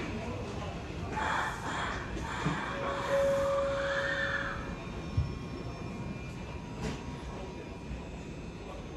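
An electric train hums quietly.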